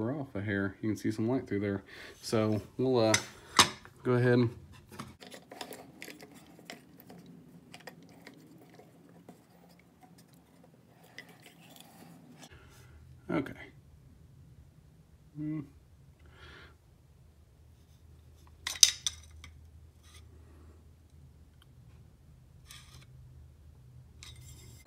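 Metal parts of a hand tool click and tap as they are adjusted.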